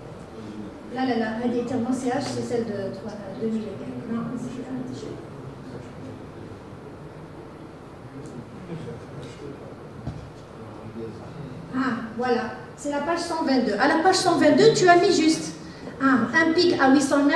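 A woman speaks through a microphone in a large echoing hall.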